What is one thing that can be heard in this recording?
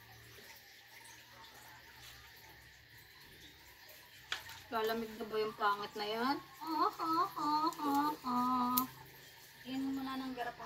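A towel rubs against a wet dog's fur.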